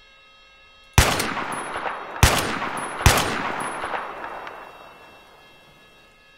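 A rifle fires three loud shots that echo and roll away.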